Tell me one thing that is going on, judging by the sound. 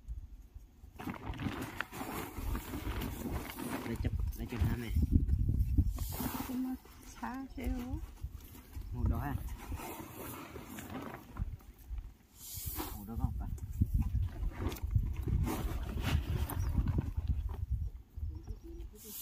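Plastic sacks rustle and crinkle as they are handled.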